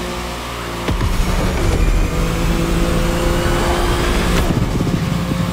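A car's boost roars loudly in a rushing burst.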